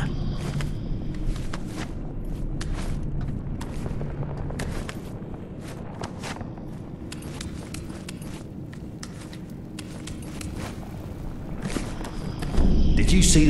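Footsteps tap on stone in an echoing space.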